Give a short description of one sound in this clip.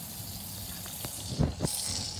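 Water runs from a tap.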